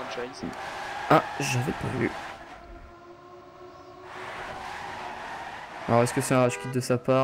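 A racing car engine whines at high speed.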